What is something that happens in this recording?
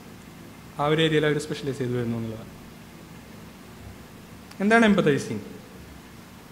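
A young man speaks calmly into a microphone, in short phrases.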